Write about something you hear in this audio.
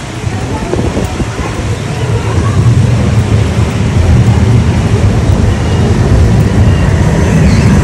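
Rain patters steadily on wet pavement.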